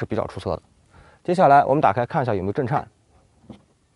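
A man speaks with animation close by.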